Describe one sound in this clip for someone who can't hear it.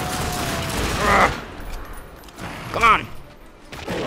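A monstrous creature shrieks.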